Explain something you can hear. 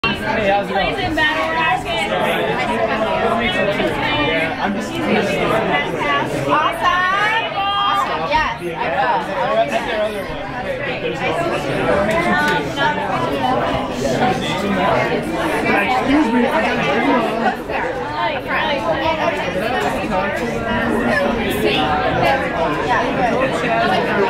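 A live rock band plays loudly with electric guitars in an echoing hall.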